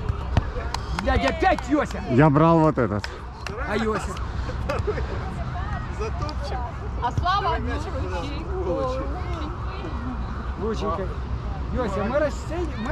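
Adult men and women call out to each other nearby with animation.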